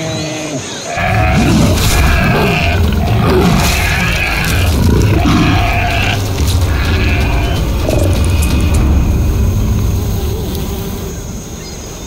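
A lion growls and snarls loudly.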